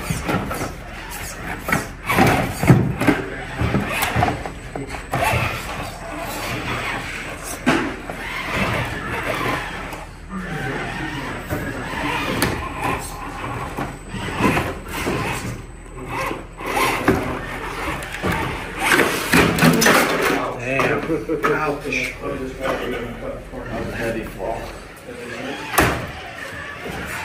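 A small electric motor whirs.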